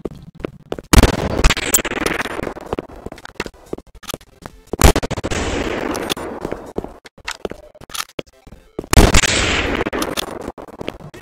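A gun fires loud shots that echo and fade.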